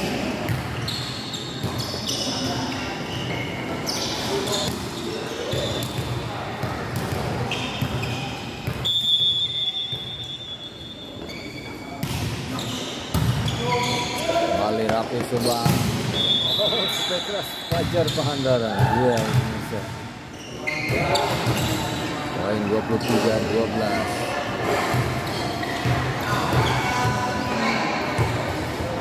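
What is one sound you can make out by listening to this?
A volleyball is struck with loud slaps.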